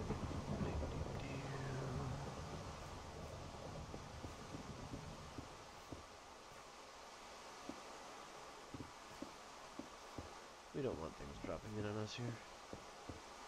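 Rain patters steadily.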